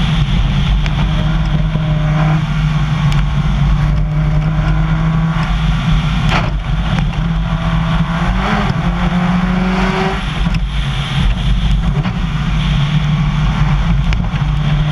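A rally car engine roars at speed under load, heard from inside the car.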